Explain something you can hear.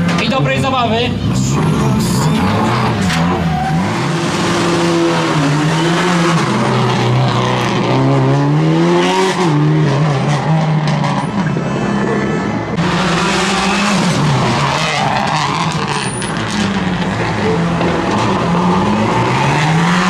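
A turbocharged boxer engine of a rally car revs and accelerates.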